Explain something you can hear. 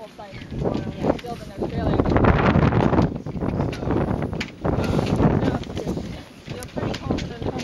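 Wind buffets a microphone with a loud, gusty rumble.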